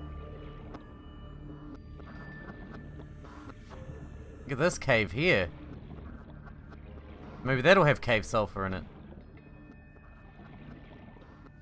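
A low underwater hum drones steadily.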